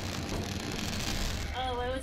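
Electric sparks crackle and fizz from a broken lamp.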